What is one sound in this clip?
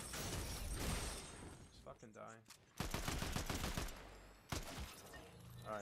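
Blades clash and swoosh in a fast game fight.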